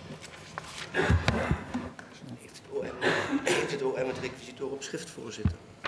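A man talks quietly nearby.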